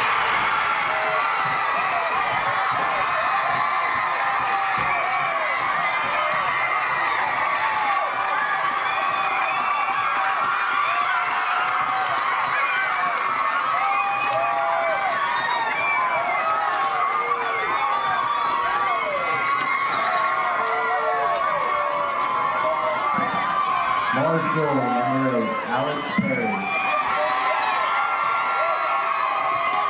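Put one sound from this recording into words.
A crowd of young players cheers and shouts excitedly outdoors.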